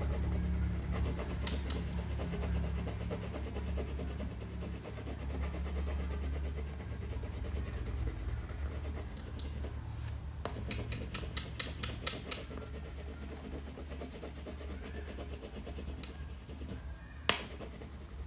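An oil pastel scratches softly across paper.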